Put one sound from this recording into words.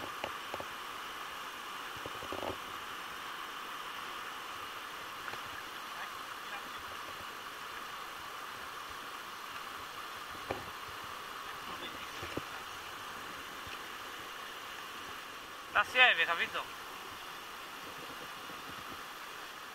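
A river rushes steadily over rapids close by.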